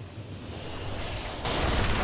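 Fantasy battle sound effects clash and crackle.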